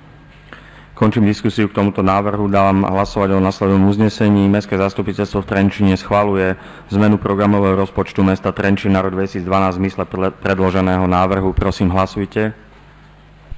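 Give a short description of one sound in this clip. A middle-aged man speaks steadily into a microphone, heard through loudspeakers in a large room.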